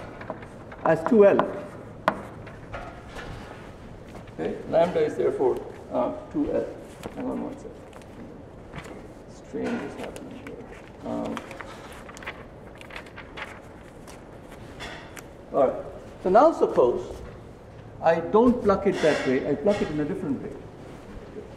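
A middle-aged man lectures calmly, slightly far off.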